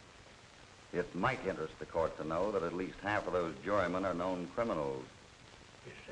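A man speaks in a calm, low voice.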